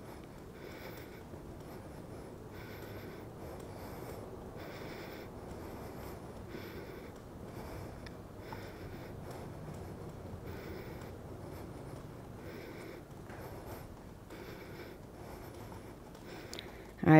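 A pedal exerciser whirs and squeaks in a steady rhythm as it is pedalled.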